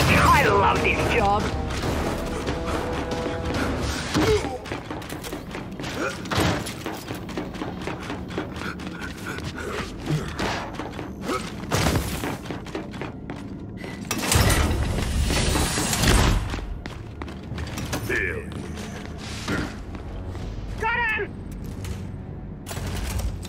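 Heavy footsteps thud on metal and snow.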